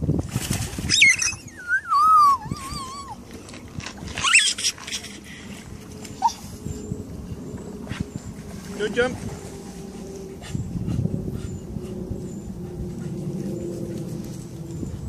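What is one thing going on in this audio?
River water flows and ripples steadily past a brick wall outdoors.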